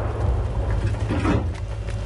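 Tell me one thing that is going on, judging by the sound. An armoured vehicle's engine rumbles close by.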